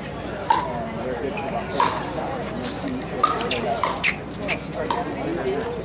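Paddles hit a plastic ball with sharp hollow pops, back and forth.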